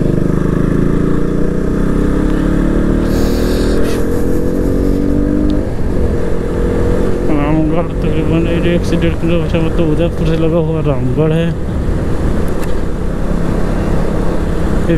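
A motorcycle engine hums steadily and shifts in pitch as it rides.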